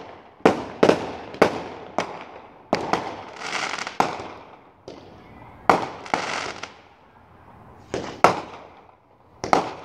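Fireworks bang and boom in the distance, one after another.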